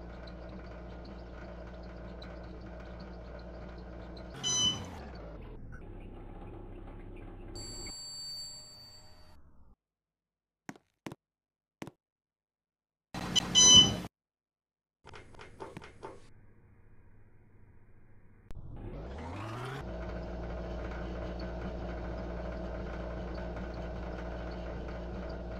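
An elevator hums steadily as it travels.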